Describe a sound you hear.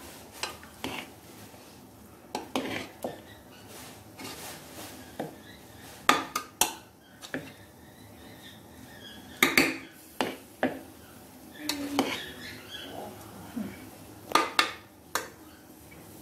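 A metal spoon scrapes and clinks against the side of a pot.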